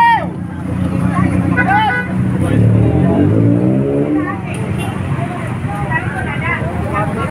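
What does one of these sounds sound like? Motorcycle engines idle and rumble nearby.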